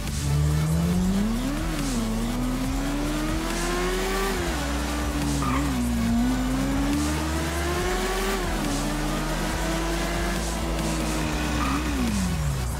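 A motorcycle engine revs high, rising and falling as it shifts gears.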